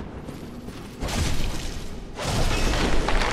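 Weapons clash loudly in a fight.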